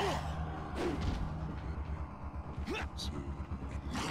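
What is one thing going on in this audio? Heavy blows thud against a body.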